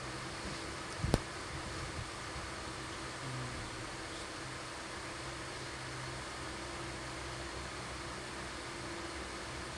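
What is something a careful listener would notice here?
An electric fan whirs steadily close by.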